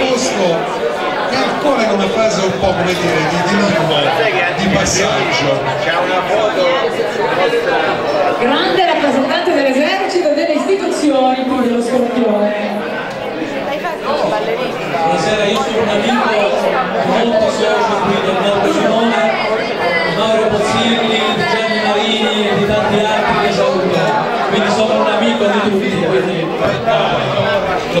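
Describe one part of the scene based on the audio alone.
Many guests chatter at their tables.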